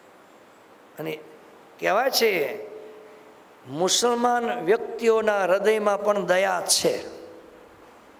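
An elderly man speaks slowly and expressively into a close microphone, with long pauses.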